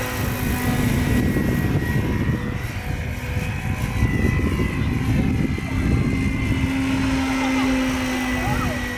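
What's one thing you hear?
A model helicopter's rotor whirs overhead.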